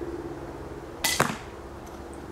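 An arrow strikes a target with a sharp thud.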